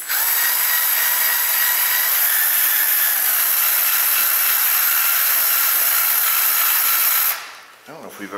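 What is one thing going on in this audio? A power tool whirs steadily at high speed against metal.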